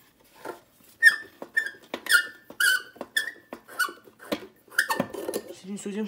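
A glass bulb clicks and squeaks as it is twisted out of its metal socket.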